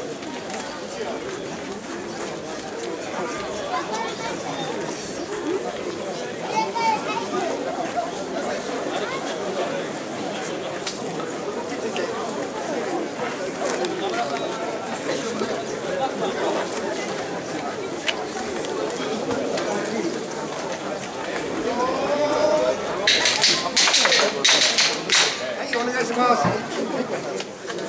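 A large crowd of men and women chatters and calls out nearby, outdoors.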